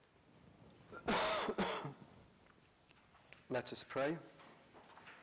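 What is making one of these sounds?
An elderly man speaks briefly through a microphone in an echoing hall.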